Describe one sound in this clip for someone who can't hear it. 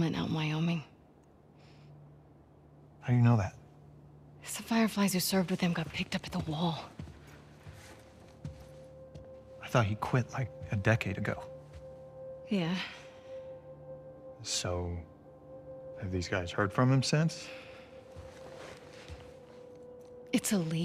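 A young woman speaks calmly and firmly, close by.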